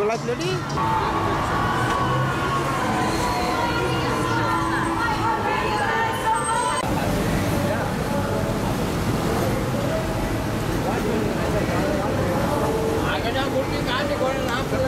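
Cars drive past on a road.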